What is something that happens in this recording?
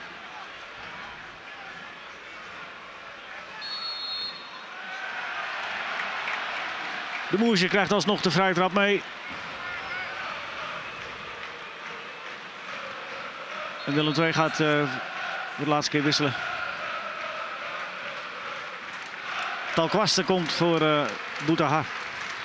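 A stadium crowd murmurs and cheers steadily in the distance.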